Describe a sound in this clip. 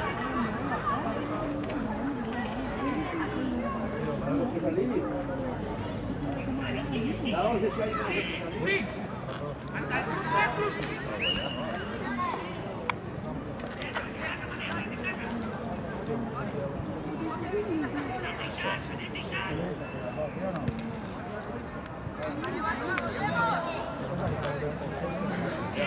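Young players shout to each other outdoors across an open pitch.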